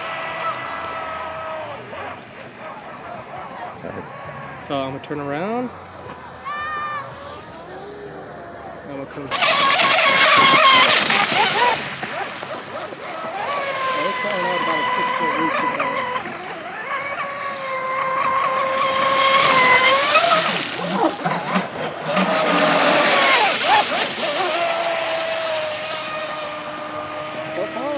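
A small model boat motor whines at high pitch, rising and falling as it races.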